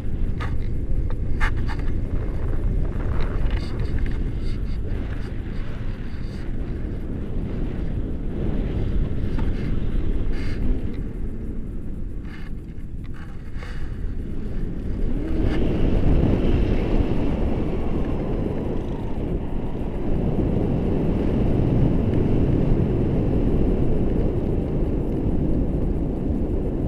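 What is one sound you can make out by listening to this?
Wind rushes and buffets a microphone.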